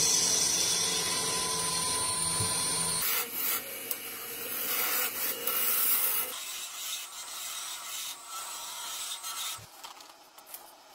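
A lathe whirs as it spins.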